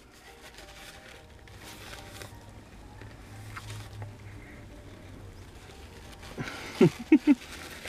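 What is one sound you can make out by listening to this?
A man chews food with his mouth full.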